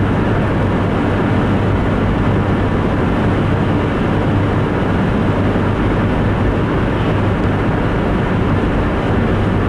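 Tyres roar on a wet highway.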